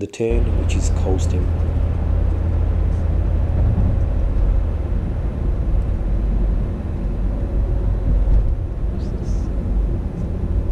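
A car engine hums steadily with low road rumble from inside the car.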